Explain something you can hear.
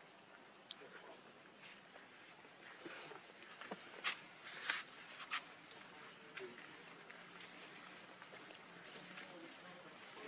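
Dry leaves rustle as monkeys shift about on the ground.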